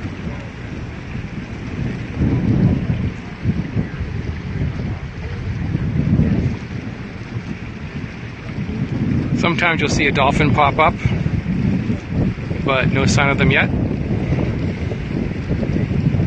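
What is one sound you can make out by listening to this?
Wind rumbles in gusts outdoors.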